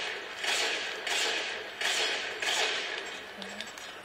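Loud gunshots boom from a video game through a loudspeaker.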